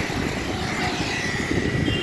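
A scooter engine hums nearby.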